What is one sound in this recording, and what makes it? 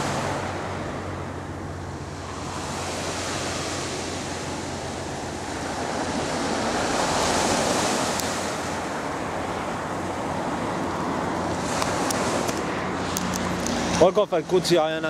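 Wind blows across an open shore.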